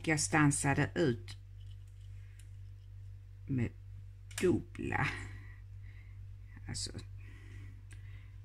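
A plastic pen cap clicks.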